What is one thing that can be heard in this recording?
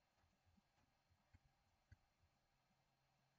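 Soft footsteps tap on stone.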